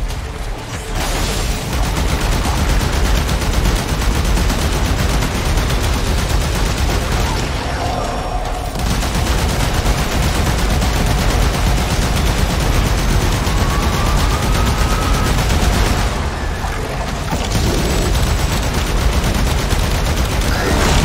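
Energy weapons crackle and buzz in a rapid stream of shots.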